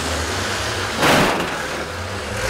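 A bus crashes into another bus with a loud metal bang.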